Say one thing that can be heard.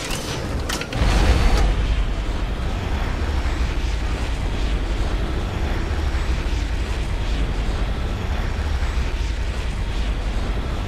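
A rocket engine roars with a steady deep rumble.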